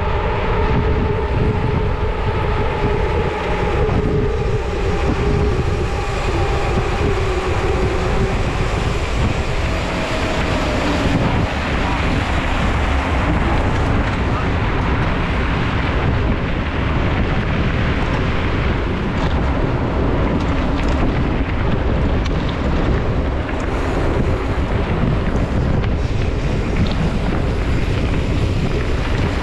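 Bicycle tyres roll and crunch over a rough path.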